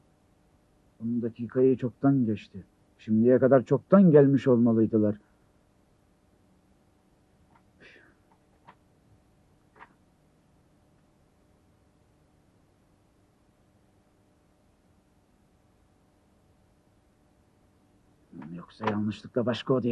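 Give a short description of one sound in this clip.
A middle-aged man speaks nearby in a low, weary voice.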